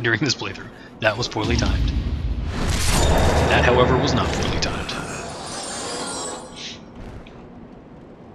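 Metal blades clash and strike in quick blows.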